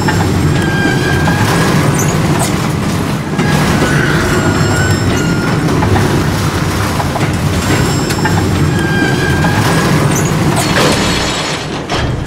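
A heavy rail car rumbles along metal tracks.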